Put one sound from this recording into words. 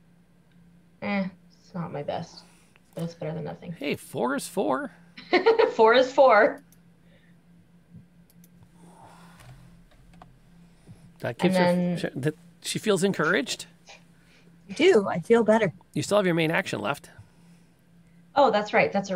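Young women talk with animation over an online call.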